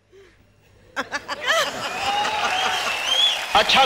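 An elderly man laughs heartily into a microphone.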